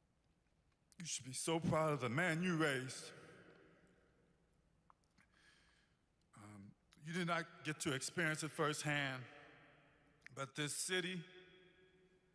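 A man speaks slowly and deliberately into a microphone in a large echoing hall.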